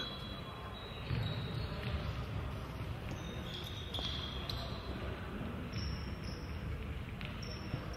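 A sparse crowd murmurs in a large echoing hall.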